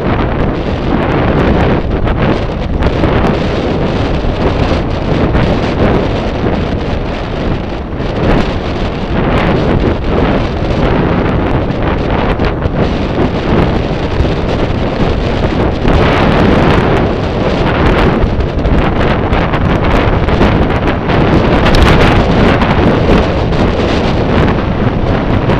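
Wind roars loudly past the microphone of a moving bicycle.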